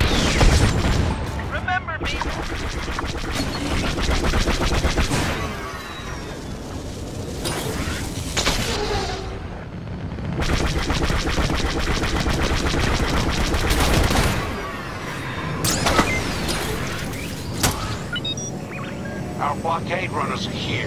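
Blasters fire in rapid bursts.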